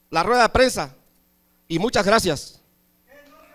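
A middle-aged man shouts with passion into a microphone over loudspeakers.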